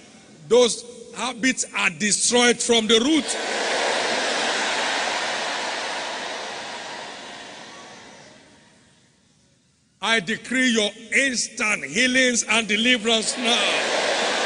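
A man speaks loudly and with passion through a microphone in a large echoing hall.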